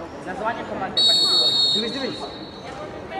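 A referee's whistle blows once.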